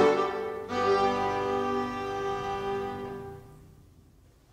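A fiddle, an accordion and a plucked zither play a held closing chord.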